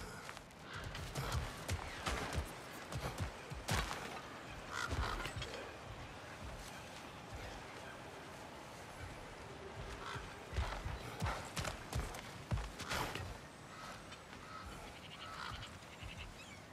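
Heavy footsteps thud on stone and wooden boards.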